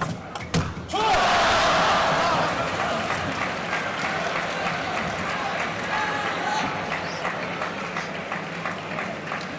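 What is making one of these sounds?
A large crowd bursts into cheers and applause.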